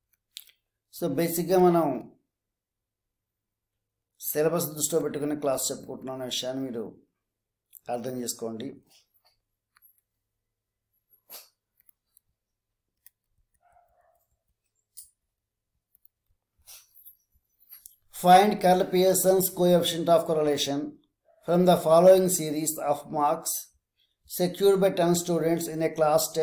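A man speaks calmly into a close microphone, explaining in bursts with pauses.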